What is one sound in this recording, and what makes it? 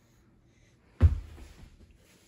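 A body thumps onto a rug-covered floor.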